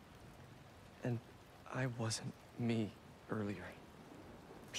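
A young man speaks softly and calmly.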